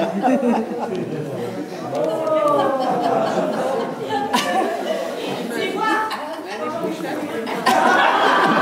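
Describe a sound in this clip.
A crowd of elderly people chatters in a large echoing hall.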